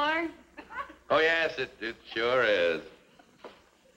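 A man speaks with amusement nearby.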